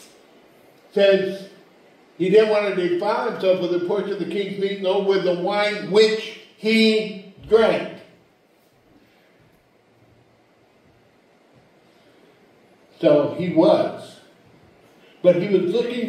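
A middle-aged man speaks with animation into a microphone, pausing now and then.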